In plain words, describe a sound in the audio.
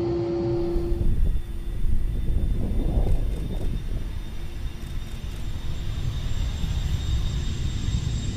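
A jet plane roars loudly as it takes off.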